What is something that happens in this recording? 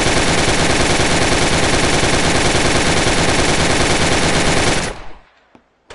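A pistol fires rapid shots.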